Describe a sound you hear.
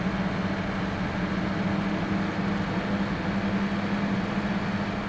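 A bus engine hums steadily at a low pitch as the bus drives along.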